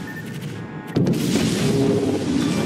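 A loud explosion bursts close by.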